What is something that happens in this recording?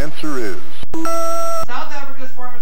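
An electronic buzzer tone sounds briefly.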